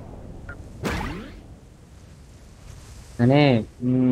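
Wind rushes past during a parachute descent.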